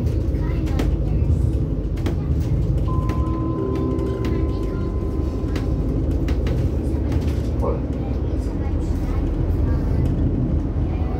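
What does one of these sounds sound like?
A vehicle's engine rumbles steadily from inside as it drives along a road.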